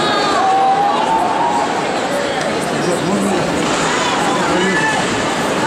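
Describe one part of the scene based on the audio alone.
Ice skates scrape across the ice.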